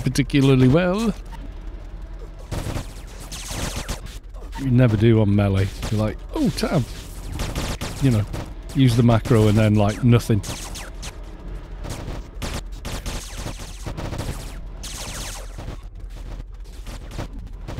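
Magic spells crackle and whoosh in a busy fight.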